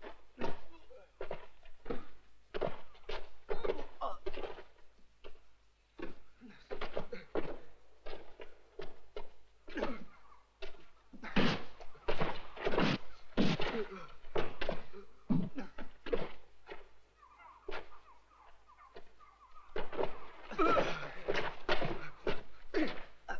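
Fists thud and smack as two men brawl.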